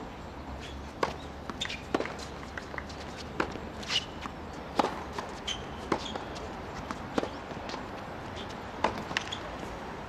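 Tennis balls pop off rackets in a quick rally, outdoors.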